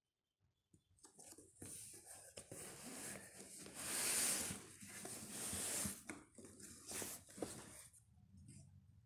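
A fabric bag rustles against a cardboard box.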